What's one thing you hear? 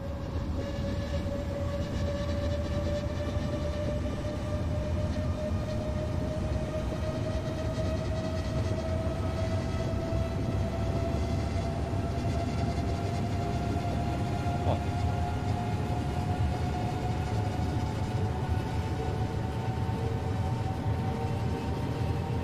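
An electric train motor whines, rising steadily in pitch as it speeds up.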